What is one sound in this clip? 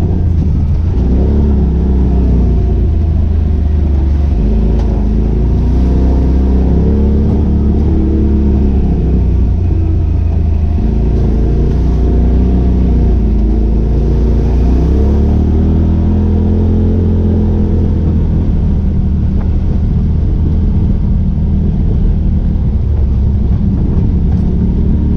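An engine rumbles close by, its pitch rising and falling as it speeds up and slows down.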